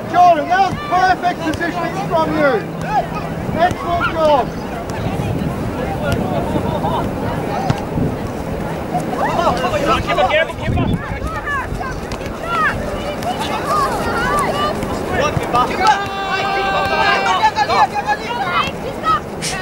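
Young players shout to each other in the distance across an open field.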